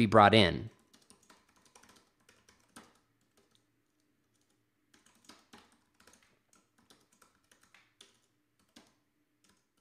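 Keys click softly as someone types on a keyboard.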